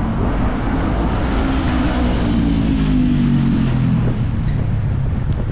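A motorcycle engine revs as it passes close by.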